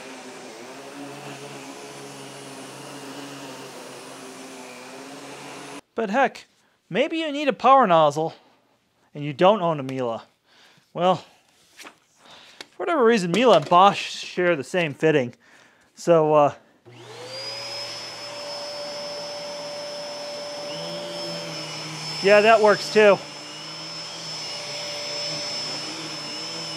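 A vacuum cleaner motor hums steadily.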